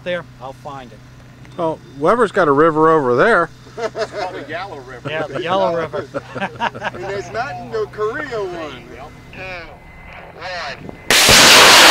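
A man talks calmly and laughs close by.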